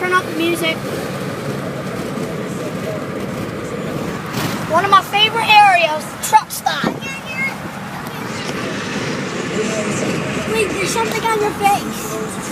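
A young boy talks and squeals excitedly close by.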